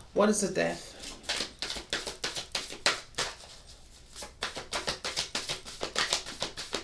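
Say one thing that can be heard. Cards shuffle and flick in a woman's hands.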